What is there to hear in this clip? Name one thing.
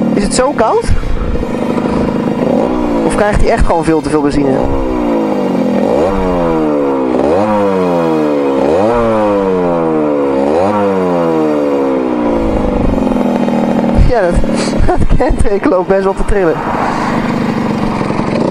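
A small motorcycle engine revs up and drops repeatedly as the rider shifts gears.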